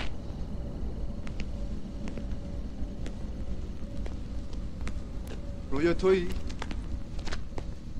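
Footsteps tap slowly on wet pavement.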